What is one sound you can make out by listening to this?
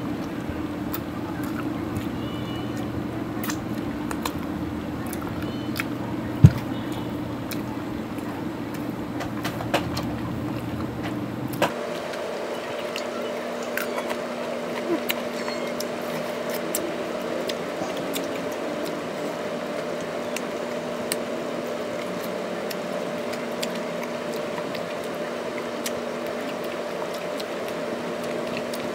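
A woman chews food noisily, close up.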